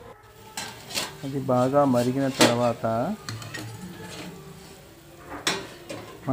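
Metal pans clank against each other.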